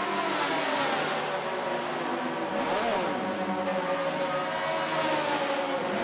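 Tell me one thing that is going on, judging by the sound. Racing car engines whine and rev as the cars drive past.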